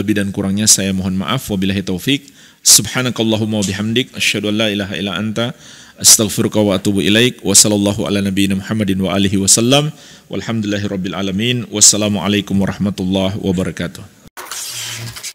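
A man speaks calmly into a close microphone in a chanting, sing-song voice.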